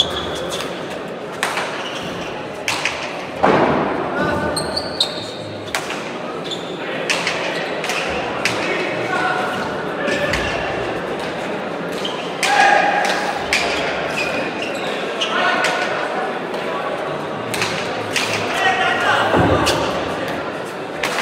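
A crowd murmurs and cheers in an echoing hall.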